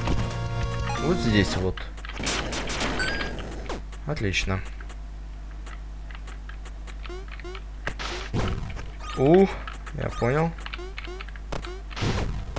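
Short electronic game sound effects chirp and zap.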